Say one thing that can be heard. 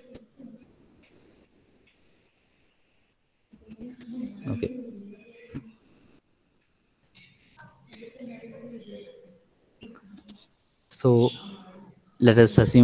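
A man speaks calmly through a microphone, explaining in short bursts with pauses.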